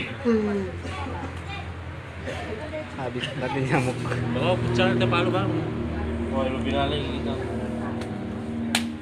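A young man talks casually close to the microphone.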